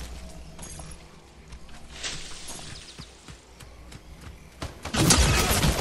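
Footsteps rustle through dry leaves and grass.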